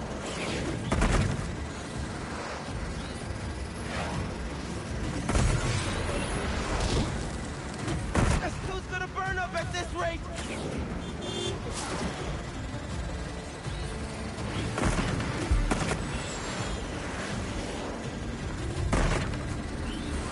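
Explosions boom now and then.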